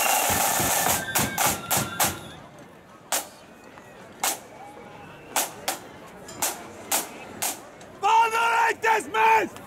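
A marching band's drums beat in sharp, spaced strokes outdoors.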